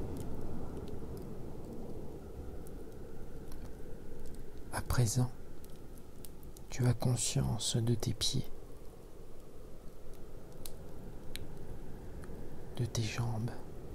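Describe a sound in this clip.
A wood fire crackles and pops with a low roar of flames.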